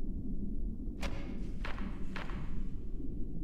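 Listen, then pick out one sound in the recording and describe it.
Book pages flip over with quick papery swishes.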